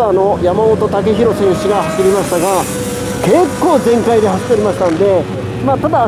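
A motorcycle races past on a track.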